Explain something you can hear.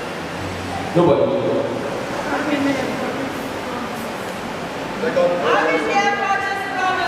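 A man speaks through a loudspeaker in an echoing hall.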